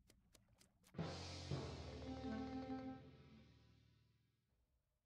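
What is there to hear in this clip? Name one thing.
A short cartoonish alarm jingle blares and fades away.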